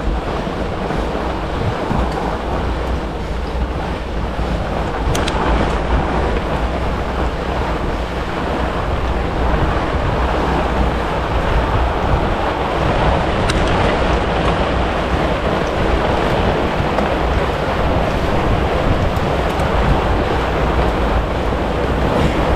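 Wind rushes steadily over the microphone outdoors.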